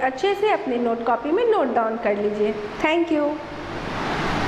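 A young woman speaks in a lively, sing-song voice close by.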